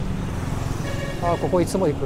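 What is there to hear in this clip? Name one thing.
A motorcycle passes by.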